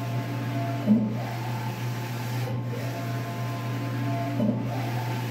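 A print head whirs as it sweeps back and forth across the printer.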